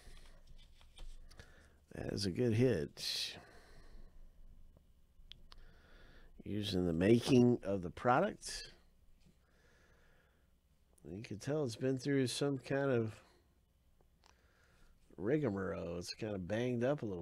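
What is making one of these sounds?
A plastic card sleeve rustles and crinkles in a hand.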